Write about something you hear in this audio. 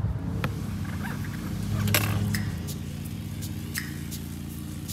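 Bicycle tyres roll over rough asphalt with a low rumble.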